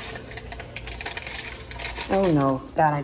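A pump squirts liquid creamer into a cup.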